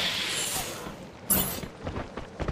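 A rifle fires a loud, sharp shot.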